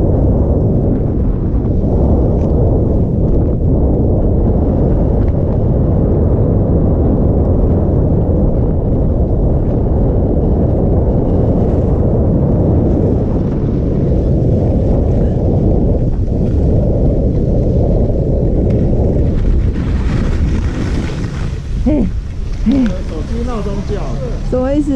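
Skis hiss and scrape over packed snow.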